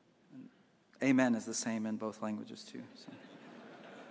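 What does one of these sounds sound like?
A man speaks through a loudspeaker system in a large echoing hall.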